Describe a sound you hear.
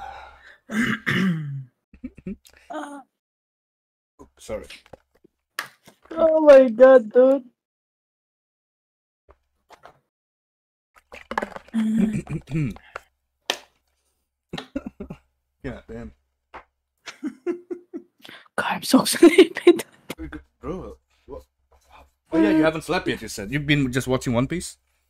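A young man speaks and laughs into a microphone.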